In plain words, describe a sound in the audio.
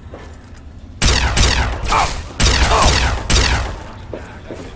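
A gun fires with loud crackling electric blasts.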